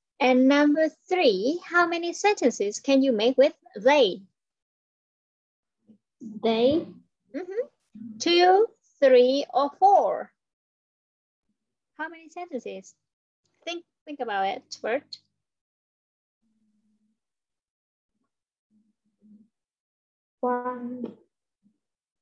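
A woman speaks with animation through an online call.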